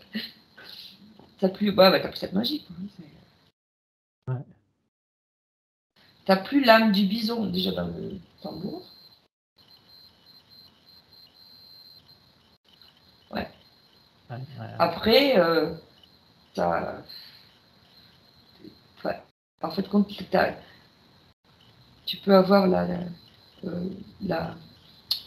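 A young woman speaks softly and slowly, close to a microphone.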